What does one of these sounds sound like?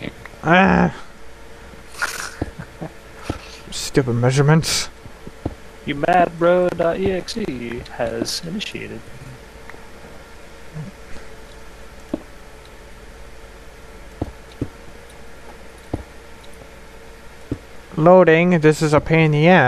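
Game blocks click and crunch as they are placed and broken.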